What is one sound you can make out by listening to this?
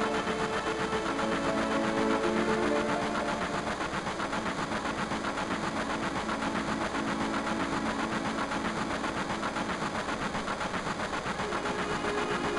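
Upbeat electronic game music plays with a steady pulsing beat.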